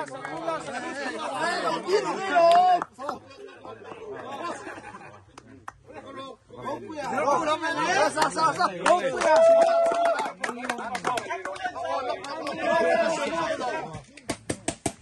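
Young men talk and shout with animation close by, outdoors.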